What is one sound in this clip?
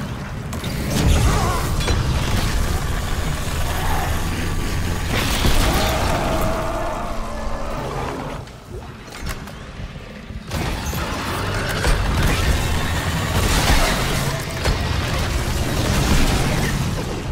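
A weapon fires in bursts of loud blasts.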